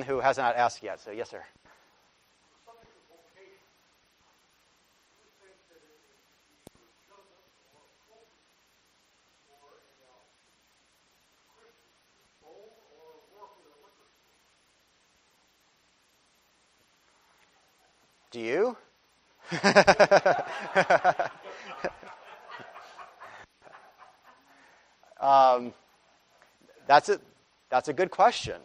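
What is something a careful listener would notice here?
A man speaks through a microphone, pausing often.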